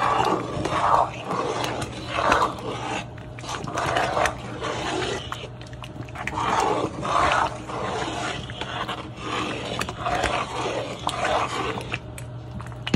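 A spoon stirs thick, sticky porridge in a pot with wet squelching.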